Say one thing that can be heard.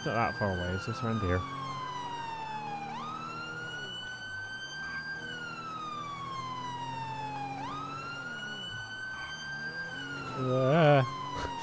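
A siren gives short rapid yelps.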